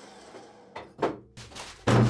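A steel tube scrapes on a metal table.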